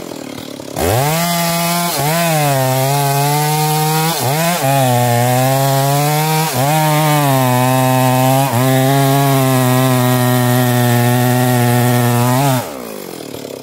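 A chainsaw engine roars loudly, revving up and down.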